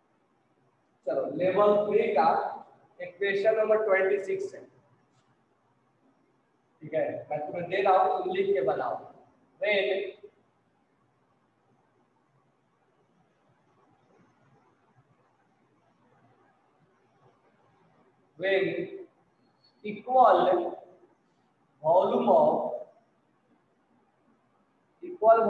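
A man lectures in bursts of speech.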